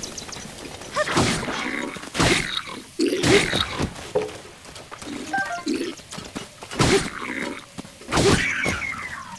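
Weapons clash and strike with sharp impacts.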